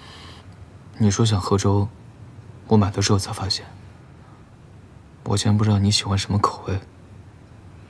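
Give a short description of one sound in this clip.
A young man speaks calmly and softly up close.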